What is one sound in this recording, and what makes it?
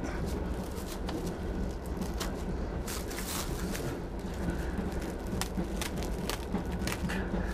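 Plastic wrap crinkles and rustles under a man's hands.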